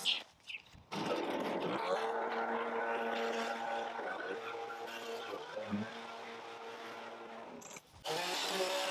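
A petrol leaf blower roars steadily.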